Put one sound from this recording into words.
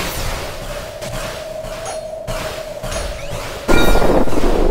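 Game attack effects whoosh and crackle repeatedly.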